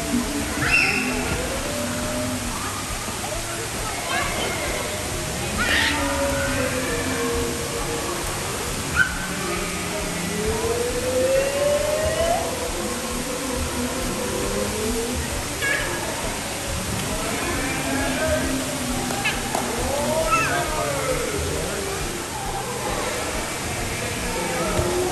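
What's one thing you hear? Water splashes and laps as children wade in a pool.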